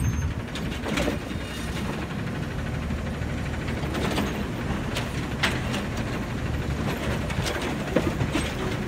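A garbage truck's hydraulic arm whines as it lifts a bin.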